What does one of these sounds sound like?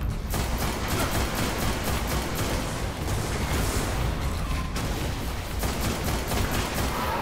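Rifle shots crack repeatedly.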